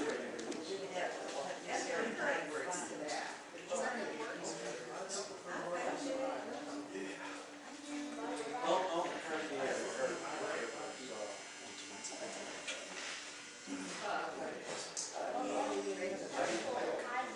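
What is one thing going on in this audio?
A man talks nearby in a relaxed, conversational tone.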